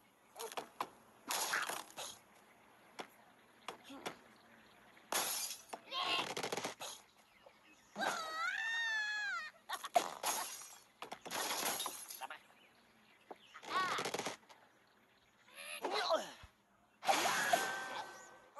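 Wooden and glass blocks crash and shatter as they topple.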